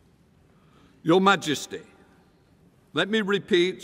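An older man speaks formally into a microphone in a large echoing hall.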